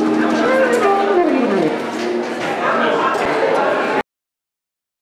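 An electric guitar strums chords.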